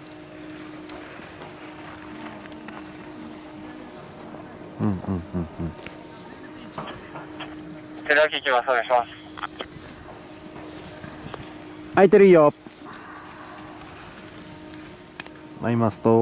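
Skis scrape over hard-packed snow as a skier carves turns.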